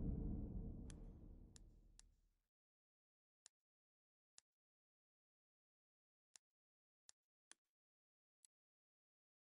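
Soft clicks tick now and then in the quiet.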